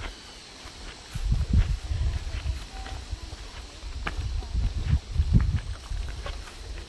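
Footsteps crunch on a dirt path close by.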